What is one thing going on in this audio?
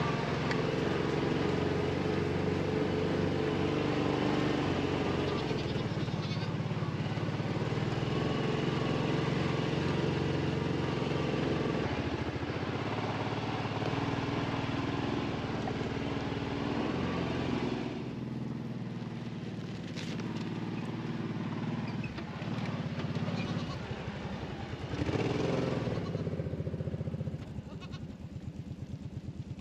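A small utility vehicle's engine runs with a steady low rumble.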